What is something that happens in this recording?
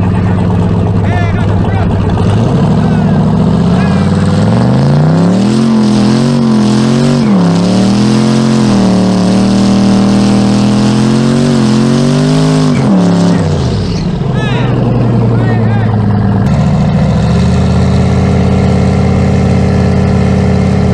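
A car engine rumbles loudly close by and revs up and down.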